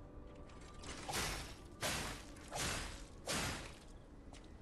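A blade swishes through the air in quick swings.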